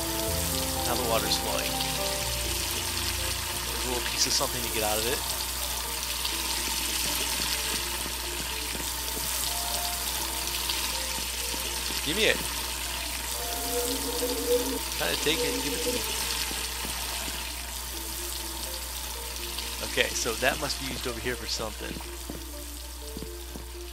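Water pours steadily from a pipe into a pool.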